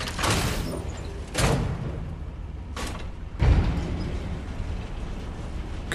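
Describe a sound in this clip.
A metal lift gate rattles as it slides shut.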